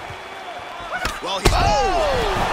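A heavy kick lands with a sharp thud.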